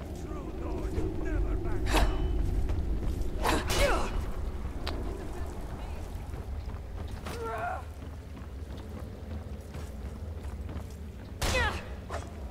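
Metal weapons clang against shields.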